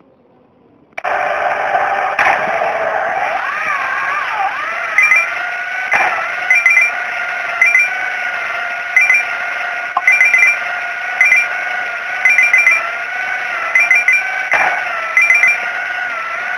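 A game car's engine hums steadily, rising and falling in pitch.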